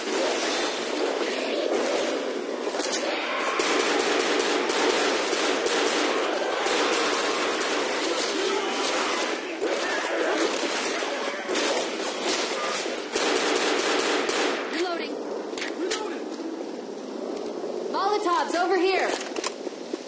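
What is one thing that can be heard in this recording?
Gunshots fire in quick, loud bursts.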